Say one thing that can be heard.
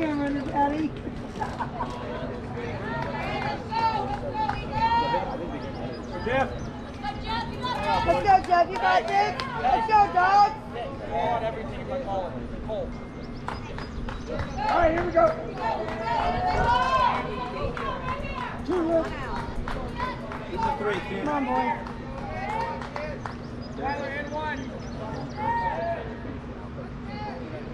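Several young players shout and cheer outdoors.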